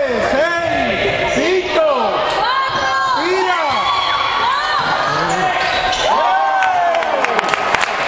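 Sneakers squeak sharply on a court in an echoing hall.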